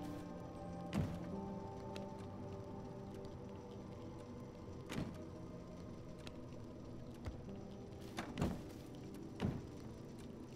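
Menu clicks and soft thuds sound from a video game.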